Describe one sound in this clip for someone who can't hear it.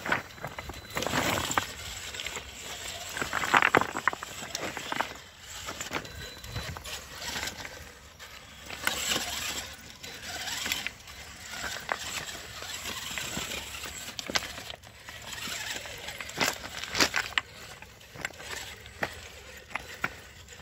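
A small electric motor whines as a toy truck crawls over rocks.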